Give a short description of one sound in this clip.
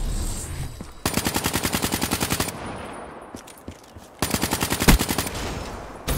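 A machine gun fires rapid bursts of shots.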